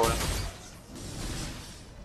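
Blasters fire in quick bursts.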